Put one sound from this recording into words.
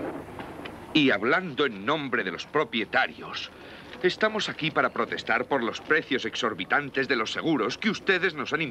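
A man speaks firmly and with feeling to a group.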